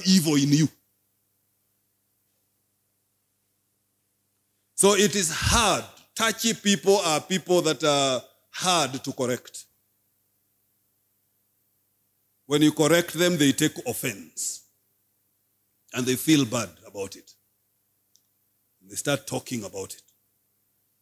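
A man speaks into a microphone in short, earnest phrases with long pauses.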